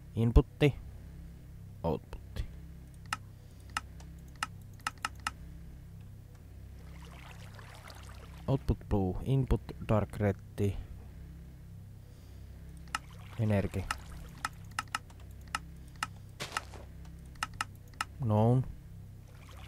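Soft menu clicks sound in quick succession.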